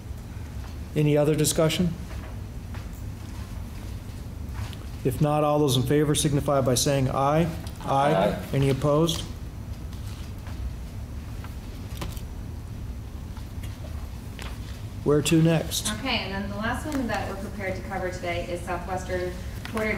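An elderly man speaks calmly into a microphone in a room with some echo.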